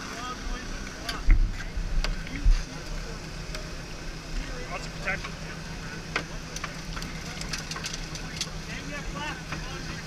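Men talk to each other outdoors.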